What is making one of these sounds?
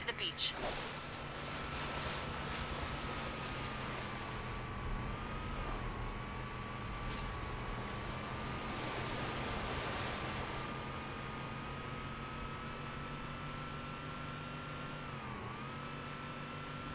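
A vehicle engine hums steadily throughout.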